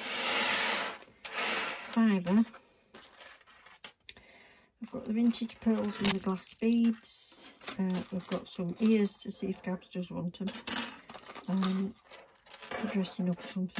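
Beaded necklaces clink and rattle as they are handled.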